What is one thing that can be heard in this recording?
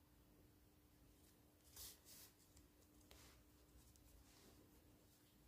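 Yarn rustles softly as it is pulled through a crocheted piece.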